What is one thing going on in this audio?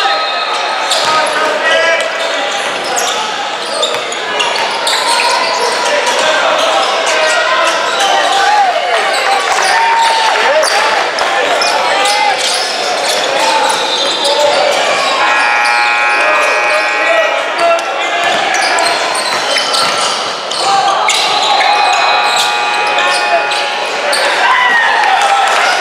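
A crowd of people talks and calls out in a large echoing hall.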